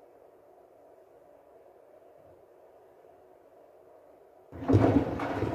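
A washing machine hums quietly as its drum turns.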